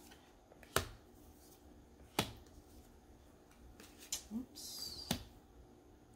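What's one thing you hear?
A card is laid down on a wooden table with a sharp tap.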